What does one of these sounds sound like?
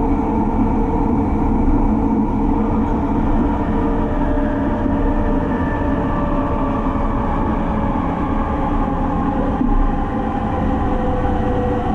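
A train rumbles and roars steadily through a tunnel, heard from inside a carriage.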